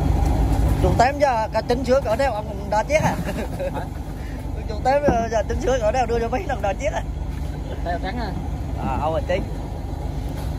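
A man talks nearby in a loud, lively voice.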